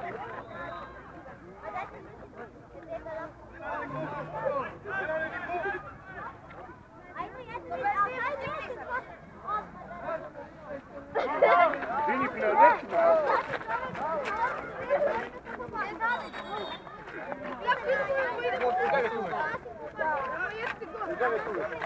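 Children shout and call out to each other outdoors, some close by.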